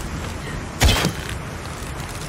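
A bow releases an arrow with a sharp snap.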